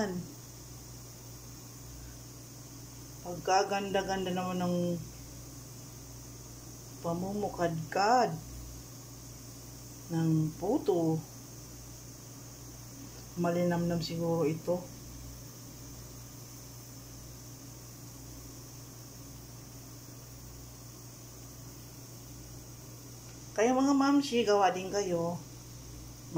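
Steam hisses softly from a pot.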